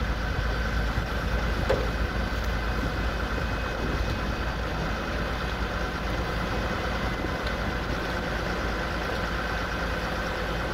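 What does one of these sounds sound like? A fire truck engine idles steadily nearby.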